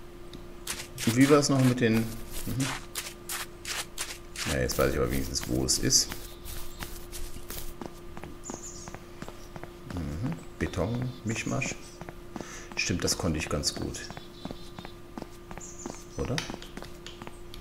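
A man talks casually and close to a microphone.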